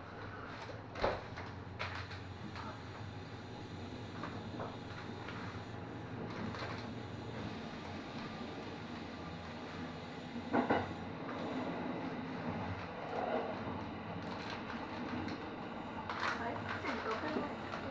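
The train's wheels click and clunk over rail joints.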